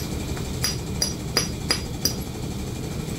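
A small tool taps sharply against a hard hoof several times.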